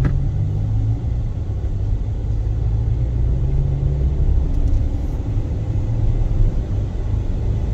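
A car engine hums, heard from inside the car.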